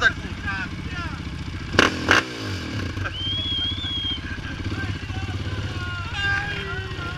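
A dirt bike engine idles and revs unevenly close by.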